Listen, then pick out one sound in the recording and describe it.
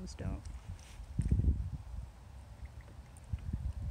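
A duck dabbles its bill in water.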